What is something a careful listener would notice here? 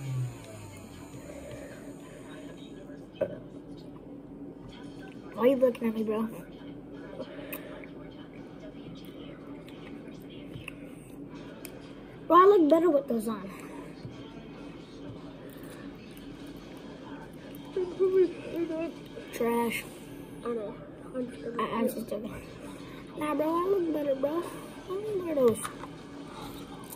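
A boy slurps noodles.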